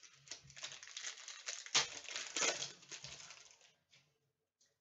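Foil wrapping crinkles and tears as hands open a pack.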